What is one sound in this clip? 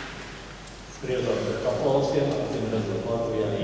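A mixed choir begins to sing.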